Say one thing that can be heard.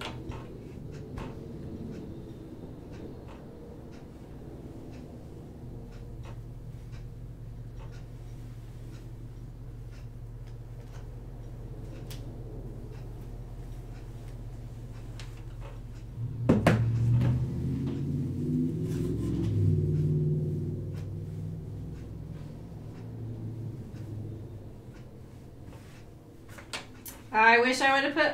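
A sewing machine hums steadily.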